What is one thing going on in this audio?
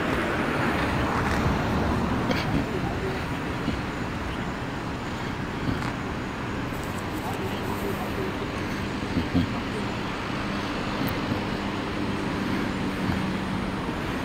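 A car engine idles nearby with a low steady rumble.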